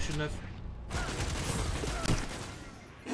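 Gunshots fire rapidly in a video game.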